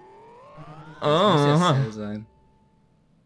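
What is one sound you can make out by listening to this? A harsh electronic error buzzer sounds.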